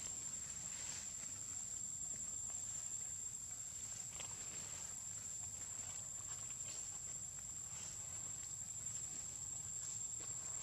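Small feet patter and rustle through leaves.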